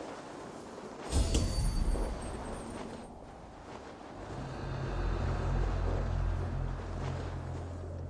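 Footsteps crunch softly through snow.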